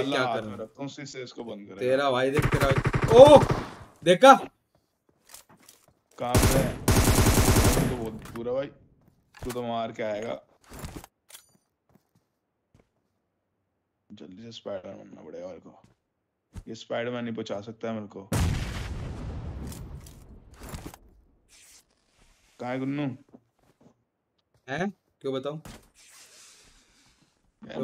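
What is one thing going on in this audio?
A young man talks with animation into a close microphone, in bursts with pauses.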